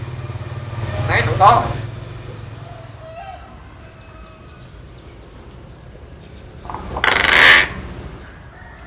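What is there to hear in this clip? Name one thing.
A caged bird gives loud, harsh calls in short bursts.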